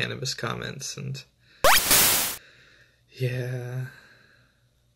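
A young man talks cheerfully and close to the microphone.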